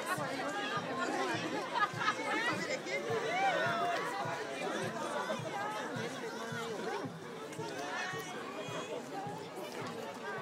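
A crowd of adults and children chatters all around outdoors.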